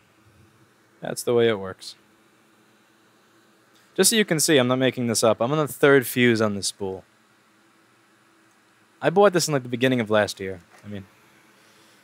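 A young man speaks calmly and close through a headset microphone.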